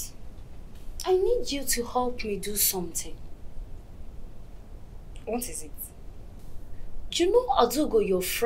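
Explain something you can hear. Another young woman answers firmly close by.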